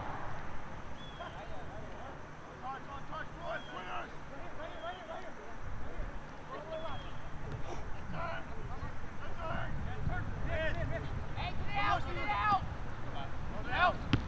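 Young players shout and call to each other across an open field outdoors.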